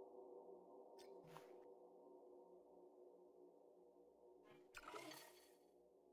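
A game menu makes short electronic swooshes as it changes.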